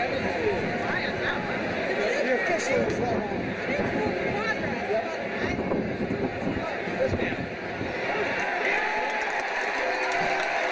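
Young men talk and call out to each other nearby.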